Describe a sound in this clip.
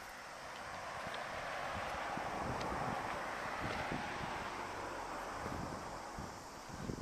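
A car passes by on a nearby road, swelling and then fading.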